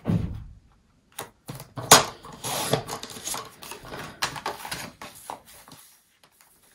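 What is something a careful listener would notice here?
A paper trimmer blade slides along its track, cutting paper.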